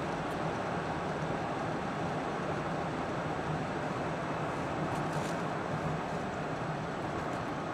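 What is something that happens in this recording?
Tyres roll over a paved road with a steady rumble.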